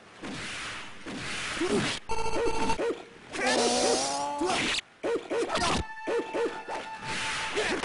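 Swords clash and slash in a fighting game.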